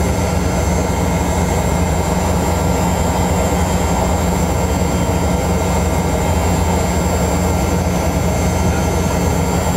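Aircraft engines roar steadily from inside a cabin.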